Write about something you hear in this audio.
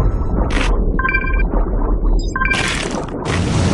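A video game chimes with short bright tones.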